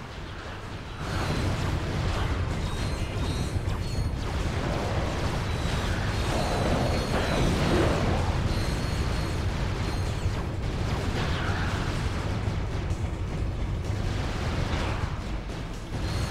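Guns fire rapidly, with rumbling blasts.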